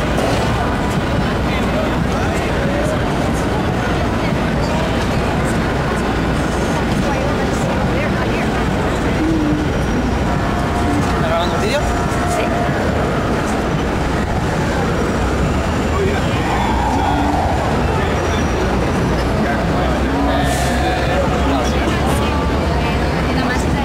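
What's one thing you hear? A crowd chatters and bustles all around outdoors.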